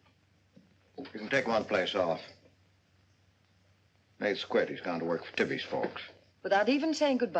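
A middle-aged man speaks nearby.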